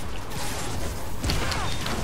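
Metal crashes and bursts apart.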